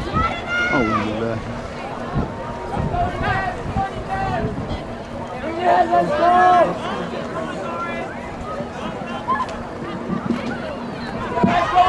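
A crowd of spectators chatters nearby outdoors.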